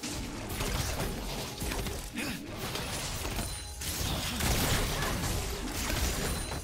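Game sound effects of spells and attacks clash and whoosh.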